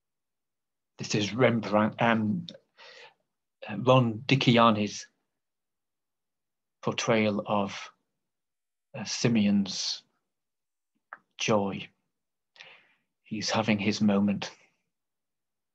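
An older man speaks calmly through a microphone in an online call.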